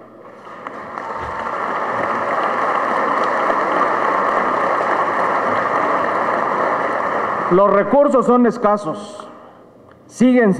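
Applause fills a large room.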